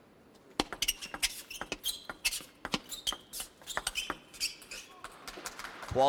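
A table tennis ball clicks rapidly back and forth off paddles and the table.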